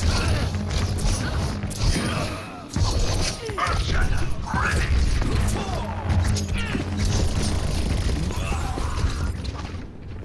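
Energy weapons fire in rapid bursts with loud blasts.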